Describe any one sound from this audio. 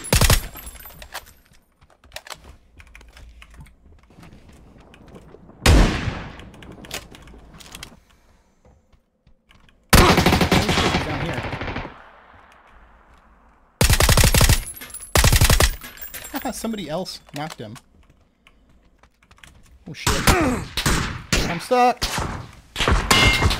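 Gunshots fire in loud bursts with a ringing echo.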